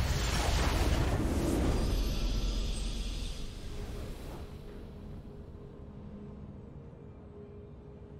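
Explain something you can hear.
A short triumphant fanfare plays, then fades.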